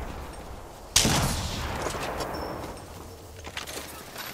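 A smoke canister bursts with a loud hissing whoosh.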